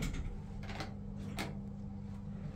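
A button clicks when pressed.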